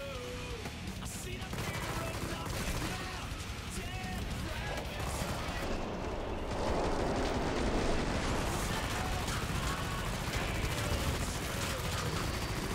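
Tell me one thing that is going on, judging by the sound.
A rifle fires rapid bursts of gunshots.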